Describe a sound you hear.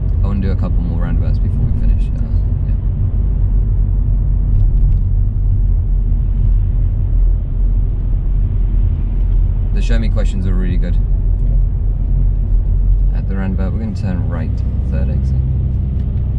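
A man speaks calmly and closely, giving short instructions.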